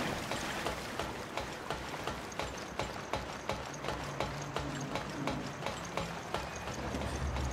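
Footsteps clank rhythmically on metal ladder rungs.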